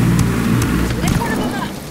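A rocket whooshes away from a helicopter.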